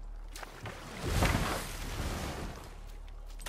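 A wooden boat scrapes onto a stony shore.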